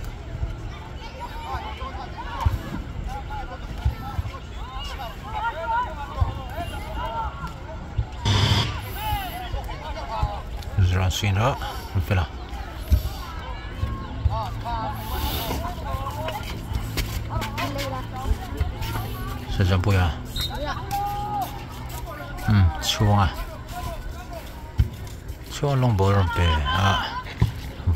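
Young boys shout and call to each other across an open field.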